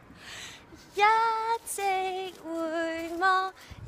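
A young woman calls out in long, drawn-out singing tones close by.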